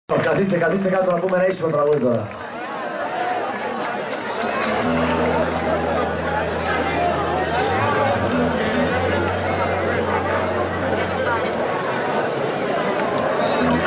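A band plays loud music through large loudspeakers outdoors.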